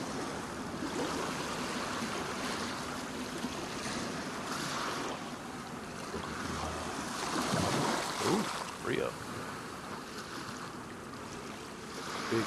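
Water laps gently against wooden pilings.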